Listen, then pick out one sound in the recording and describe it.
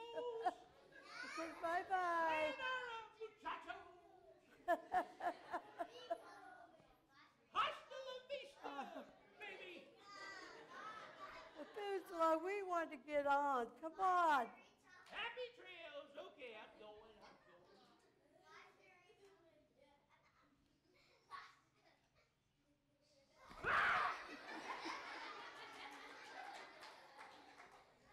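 A middle-aged woman laughs loudly.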